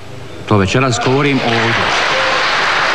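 An elderly man speaks into a microphone in a large hall.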